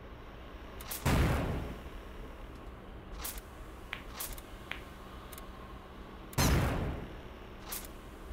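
Cartoon bombs explode with deep booms.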